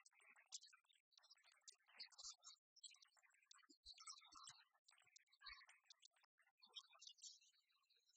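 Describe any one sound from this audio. Game pieces click on a wooden table.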